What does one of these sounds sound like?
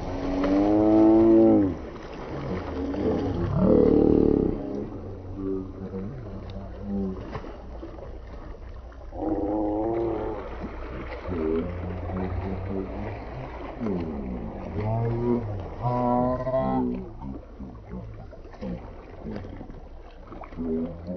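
Water splashes and laps as swimmers move.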